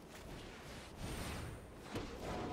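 A magical whoosh sweeps by as a card is cast.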